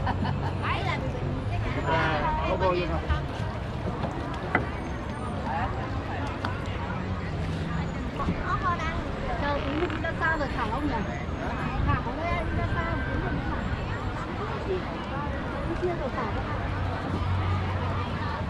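A crowd of people chatter and call out nearby, outdoors.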